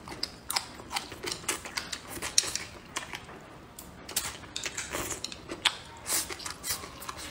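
A young woman slurps and chews food wetly, close to a microphone.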